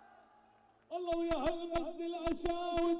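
A man sings loudly through a loudspeaker.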